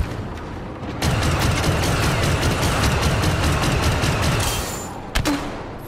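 Blaster fire crackles in rapid bursts.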